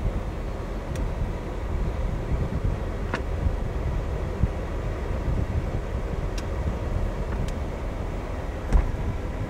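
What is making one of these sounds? A convertible roof's mechanism clicks and clunks now and then.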